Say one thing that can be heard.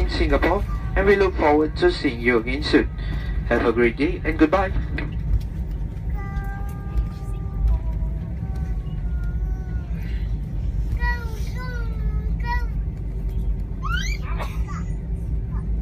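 A steady low engine drone fills an aircraft cabin.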